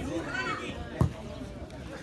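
A football is kicked with a thud.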